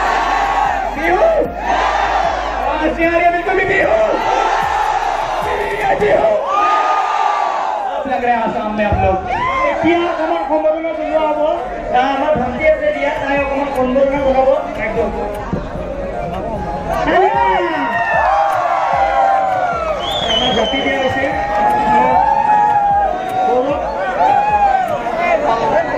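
A crowd of young people cheers and shouts all around.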